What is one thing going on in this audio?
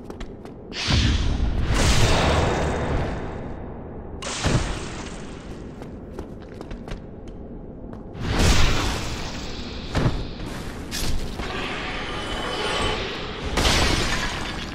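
Metal weapons clash and clang in a fight.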